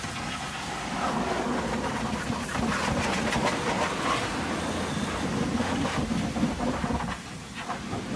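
A pressure washer sprays water hard against metal.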